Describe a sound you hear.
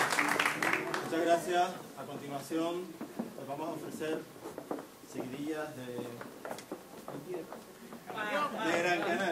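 A man sings loudly.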